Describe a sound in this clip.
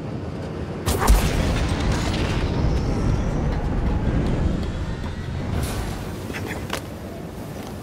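Something slides quickly along a metal pipe with a loud rushing whoosh.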